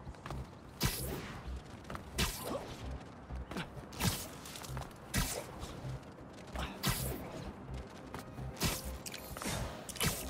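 Air whooshes past in quick, repeated swooping rushes.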